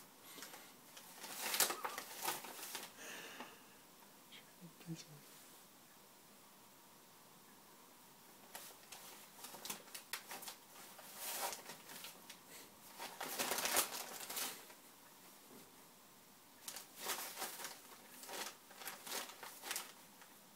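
Wrapping paper rustles and crinkles as a cat paws and pushes into it.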